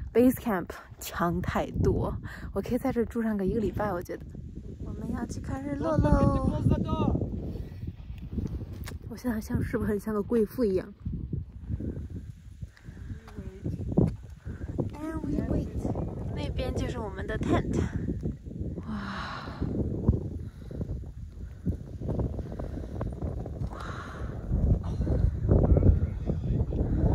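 Wind blows and rumbles against a microphone outdoors.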